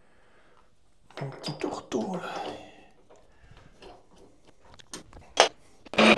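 A metal tool holder clunks into place.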